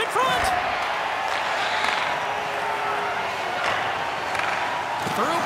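Hockey sticks click against a puck on ice.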